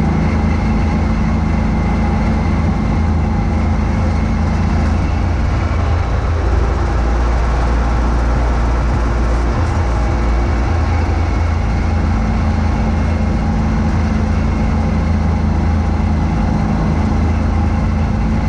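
Snow whooshes and sprays out of a snow blower chute.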